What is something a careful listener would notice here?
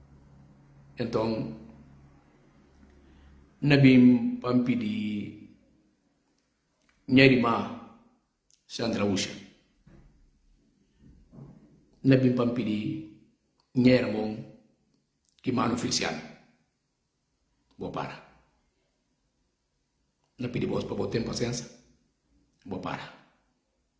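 A man speaks with animation in short bursts, close to a microphone.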